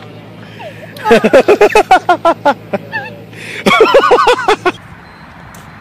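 A woman laughs loudly close by in bursts.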